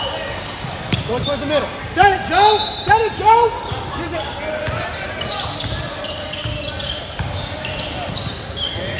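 A crowd of spectators murmurs and chatters in the background.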